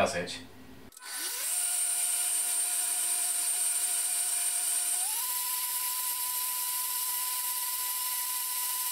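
A blender whirs loudly and steadily, then rises to a higher pitch.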